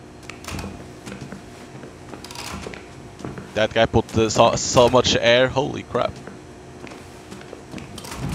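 Footsteps clank on a metal grating floor.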